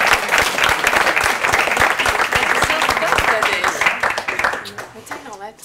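An audience claps loudly, then the applause dies away.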